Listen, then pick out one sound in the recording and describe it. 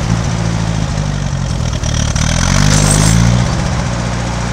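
A tractor engine briefly revs up and then settles back down.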